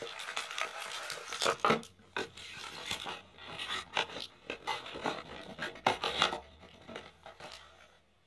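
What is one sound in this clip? A cardboard box scrapes and taps on a table.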